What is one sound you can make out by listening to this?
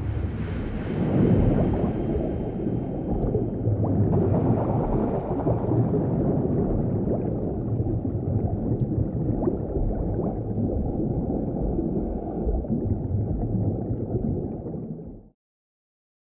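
Water rumbles and bubbles in a deep, muffled underwater roar.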